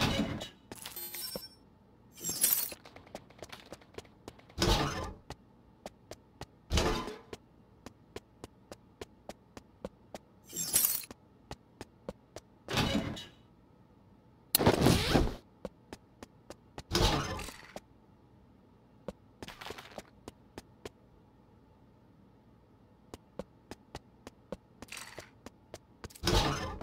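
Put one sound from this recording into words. Footsteps tap steadily across a hard floor.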